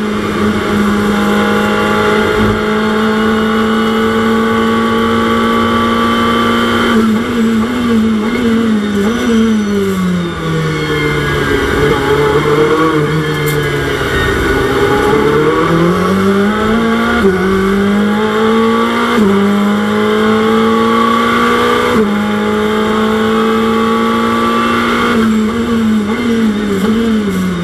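A race car engine roars loudly, shifting down through the gears and revving back up.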